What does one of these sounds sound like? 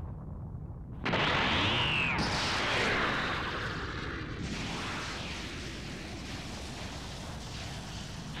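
An energy blast whooshes through the air.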